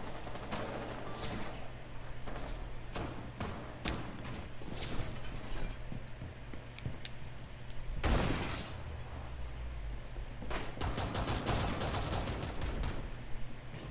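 A gun fires bursts of rapid, loud shots.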